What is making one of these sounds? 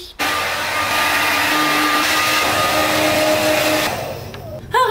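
A hair dryer blows with a loud steady whir close by.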